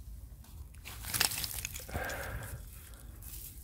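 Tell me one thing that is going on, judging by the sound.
A trowel scrapes and crunches through dry soil and roots.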